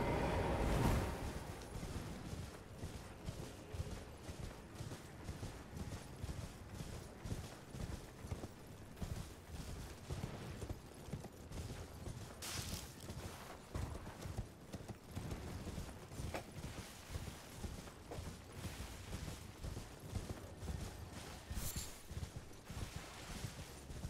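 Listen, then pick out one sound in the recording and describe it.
Horse hooves gallop steadily over the ground.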